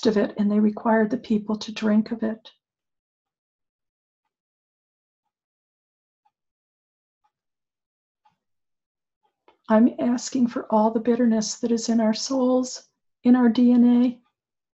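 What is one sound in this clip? An older woman speaks calmly and closely into a microphone, pausing in between.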